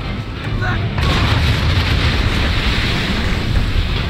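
Large waves break and splash over a ship's deck.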